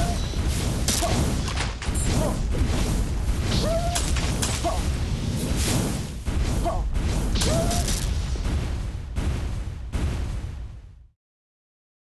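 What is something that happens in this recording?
Explosions boom and crackle rapidly in a game.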